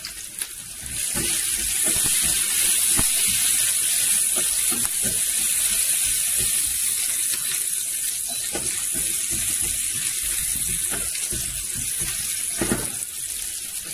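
A wooden spatula scrapes and stirs in a frying pan.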